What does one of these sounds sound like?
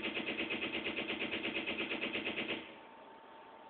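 Rapid electronic ticks play from a television speaker.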